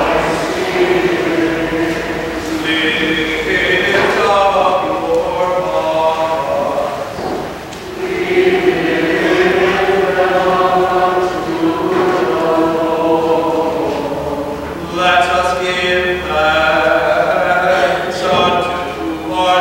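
A choir sings a slow hymn in a large echoing hall.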